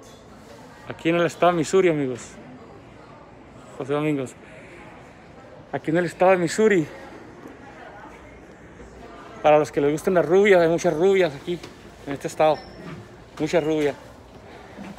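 A middle-aged man talks close to the microphone, with animation, in short bursts.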